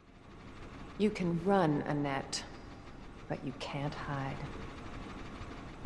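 A young woman speaks calmly and mockingly, close by.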